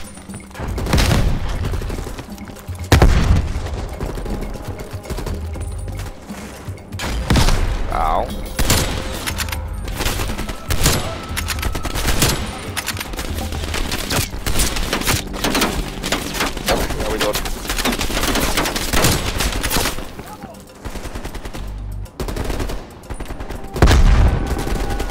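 Rifle shots crack loudly and echo.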